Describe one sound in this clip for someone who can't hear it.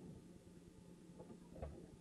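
A door knob turns with a click.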